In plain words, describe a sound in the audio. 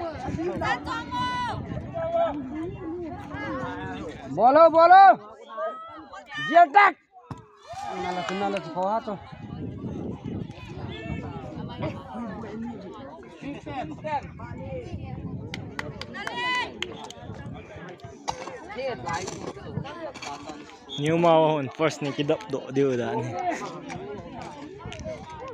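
A crowd of young people chatters and shouts outdoors.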